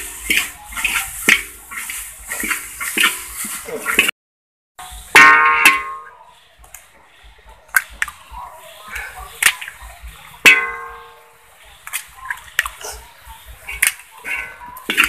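Metal spoons scrape and clink in a metal wok.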